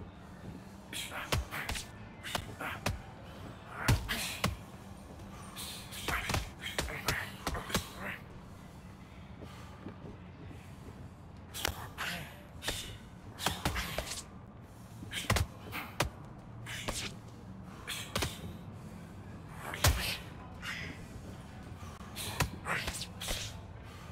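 Boxing gloves thud sharply as punches land, in quick bursts.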